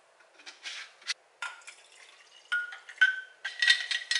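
Liquid pours into a glass.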